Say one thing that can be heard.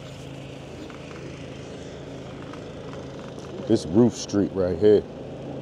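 An electric bike's motor hums while riding.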